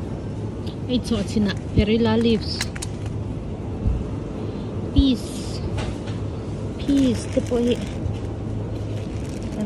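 Plastic packaging crinkles as a hand handles it.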